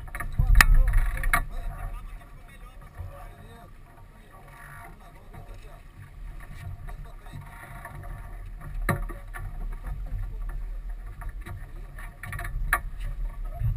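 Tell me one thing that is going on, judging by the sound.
Sailing gear clicks and knocks on deck.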